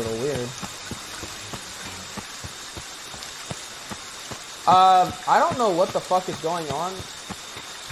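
Footsteps run quickly over a path.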